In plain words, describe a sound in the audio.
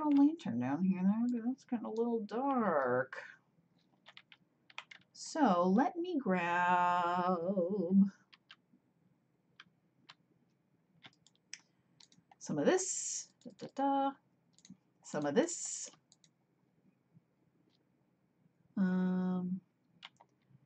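A woman talks with animation into a close microphone, in short bursts.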